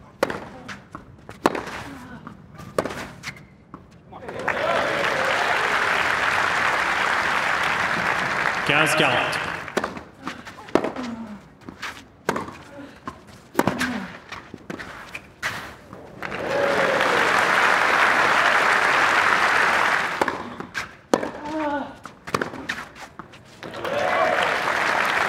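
A man grunts loudly as he hits the ball.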